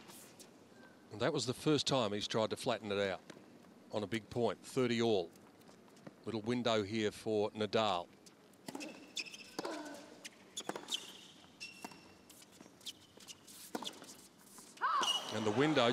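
A tennis ball is struck back and forth with sharp pops of rackets.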